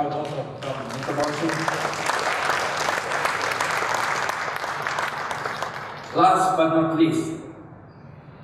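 A man speaks formally into a microphone over loudspeakers in a large hall.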